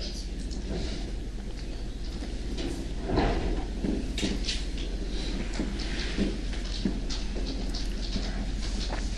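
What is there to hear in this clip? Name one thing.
An adult man speaks.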